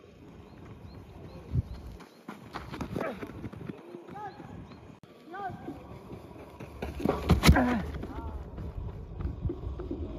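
Cleated shoes scuff and patter on loose dirt as a man sprints.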